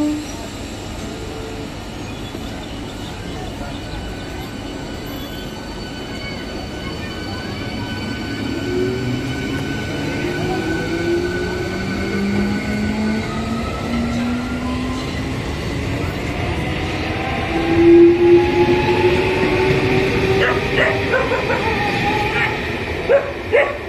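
An electric train rumbles past on the tracks with a rising whine.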